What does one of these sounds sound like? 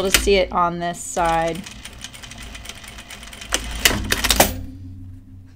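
A sewing machine runs briefly.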